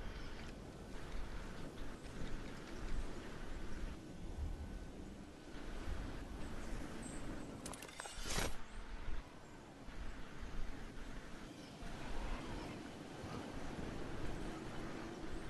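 Wind rushes steadily past a falling figure.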